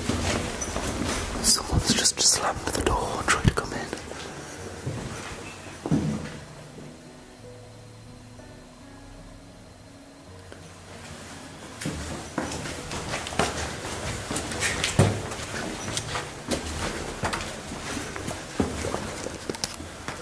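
Boots tread on stone stairs.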